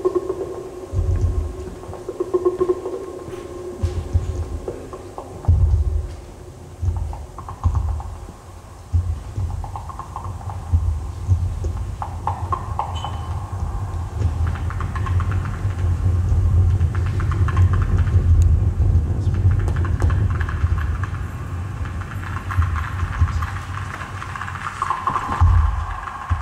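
A modular synthesizer plays deep pulsing bass tones and shifting electronic sounds.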